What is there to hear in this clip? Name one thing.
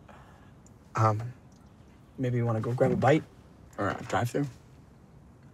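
A young man talks calmly up close.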